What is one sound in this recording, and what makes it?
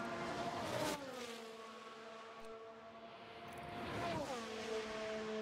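A racing car engine whines loudly at high revs, dropping in pitch as it shifts down.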